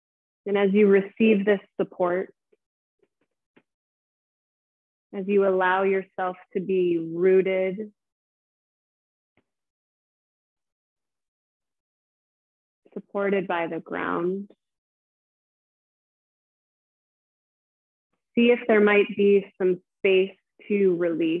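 A woman speaks calmly and softly into a close microphone, with long pauses.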